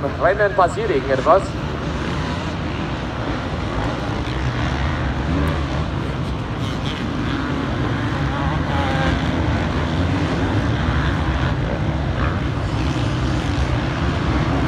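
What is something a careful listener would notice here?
Several motorbike engines roar and whine as the bikes race downhill nearby.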